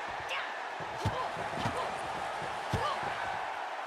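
Blows land with sharp slaps.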